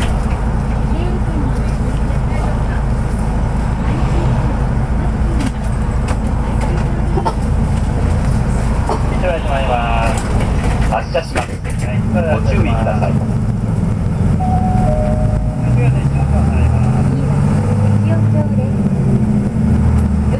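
A vehicle's engine and tyres rumble steadily on the road from inside.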